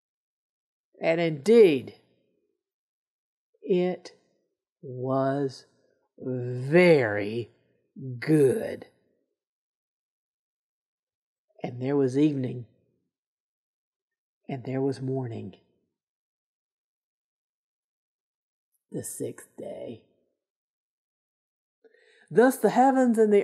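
A middle-aged woman speaks calmly and warmly close to a microphone, with pauses between phrases.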